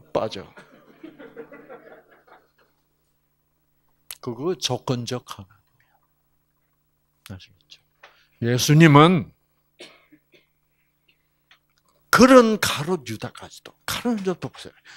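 An elderly man speaks with animation through a microphone, in bursts with pauses.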